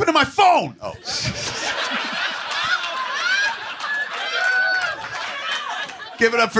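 An audience laughs in a hall.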